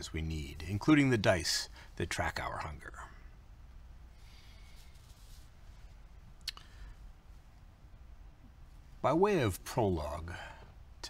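A middle-aged man speaks calmly and clearly into a microphone, with pauses.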